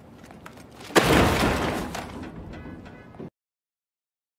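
A heavy object crashes into a metal dumpster.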